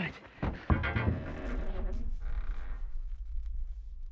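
A man stumbles and thuds against a wooden floor.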